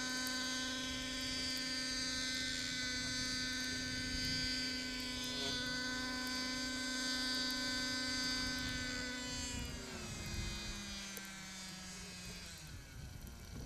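A small model airplane engine whines steadily in the distance, then winds down and stops.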